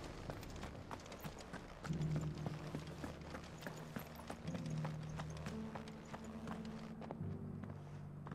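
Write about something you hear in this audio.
Footsteps tread on stone ground.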